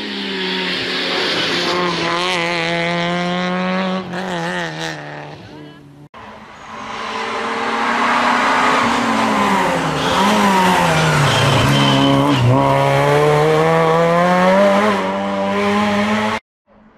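A rally car engine roars at high revs, rising and falling in pitch as the car speeds past.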